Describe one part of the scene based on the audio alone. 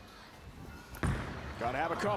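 A bowling ball thuds onto a wooden lane.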